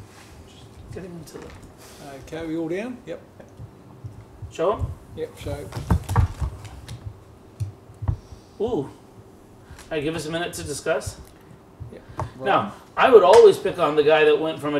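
Several men talk in turn, calmly, nearby.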